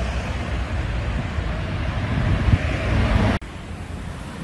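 Cars drive past on a road nearby.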